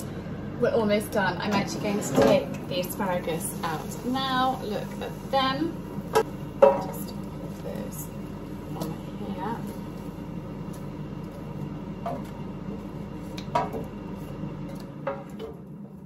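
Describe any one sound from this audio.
A fryer hums steadily.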